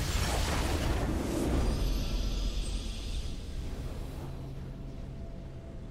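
A triumphant victory fanfare rings out and slowly fades.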